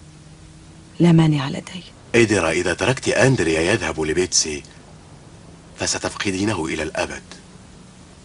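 A middle-aged man speaks calmly and seriously.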